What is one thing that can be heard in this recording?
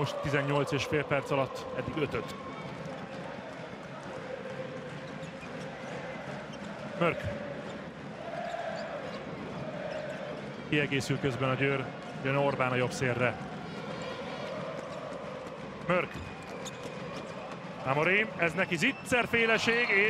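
A ball bounces on a hard court.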